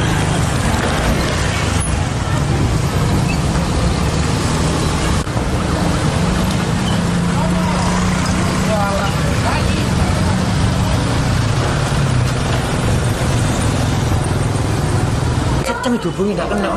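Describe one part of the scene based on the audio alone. Motorcycle engines rumble past on a road.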